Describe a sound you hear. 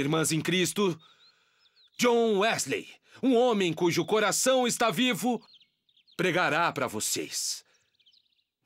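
A man speaks loudly and with animation outdoors.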